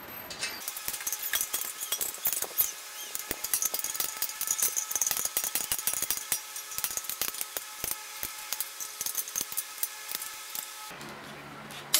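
Small metal parts click and rattle close by.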